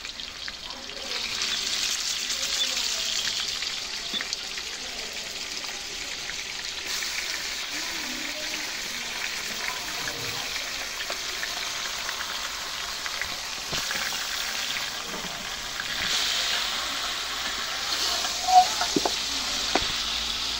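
Hot oil sizzles loudly in a pot.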